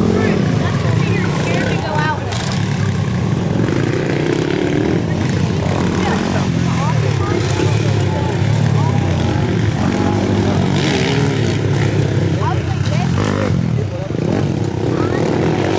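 A dirt bike engine revs loudly, rising and falling in pitch.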